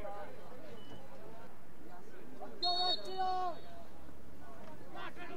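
Players and spectators shout outdoors.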